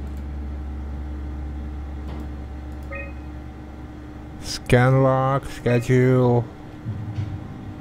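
Soft electronic clicks sound as menu buttons are pressed.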